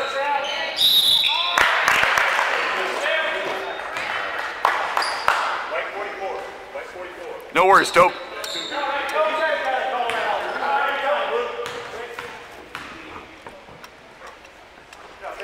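Spectators talk and cheer nearby, echoing in a large hall.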